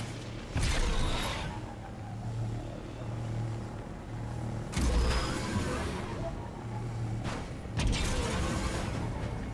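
A rushing whoosh bursts out several times as the hover bike boosts.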